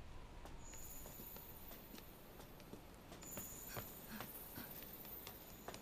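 Footsteps tread on rock.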